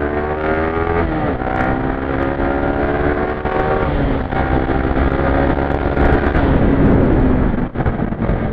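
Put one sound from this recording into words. A motorcycle engine revs high and climbs through the gears.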